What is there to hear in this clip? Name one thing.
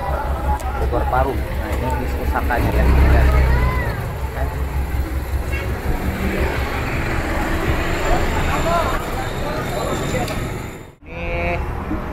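A bus engine idles with a low, steady rumble.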